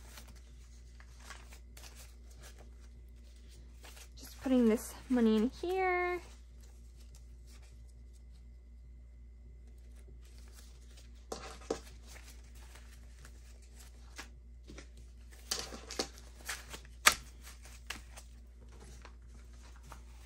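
Paper banknotes rustle and flick as they are counted by hand.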